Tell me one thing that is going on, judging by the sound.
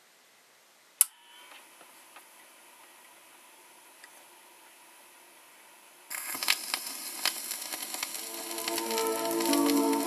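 A worn record hisses and crackles as it turns.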